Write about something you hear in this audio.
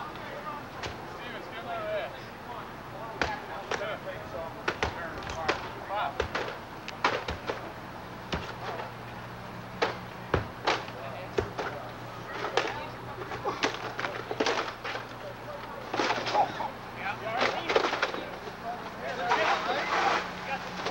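Axes and tools thud and knock against a roof, repeatedly.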